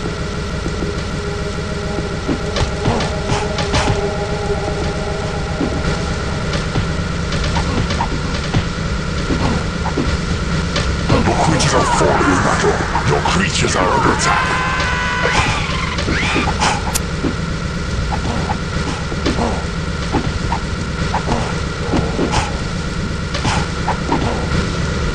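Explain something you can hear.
Flames roar in a steady low rush.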